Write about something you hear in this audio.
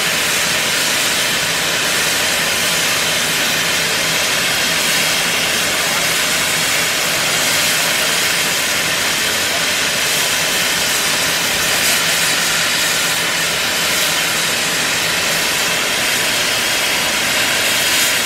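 A steam locomotive hisses loudly as steam blows off.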